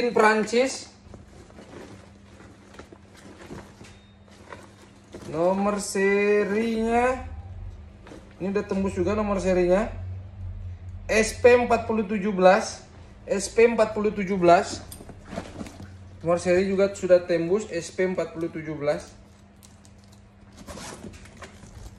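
A bag's zip and buckles clink and rattle.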